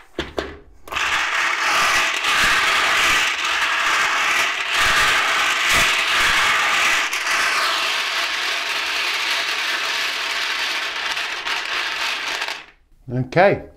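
Hard plastic balls rattle and clatter steadily as hands stir them in a plastic bowl.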